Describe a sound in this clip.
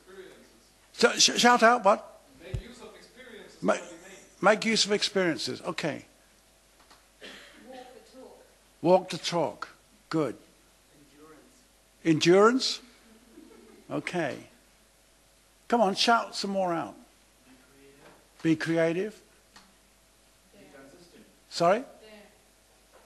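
An elderly man speaks with animation into a nearby microphone, in short bursts with pauses.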